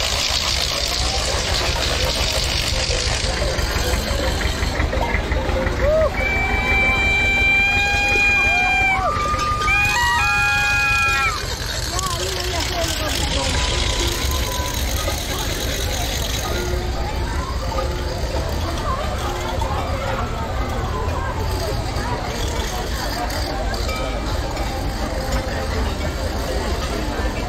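A large outdoor crowd chatters and murmurs.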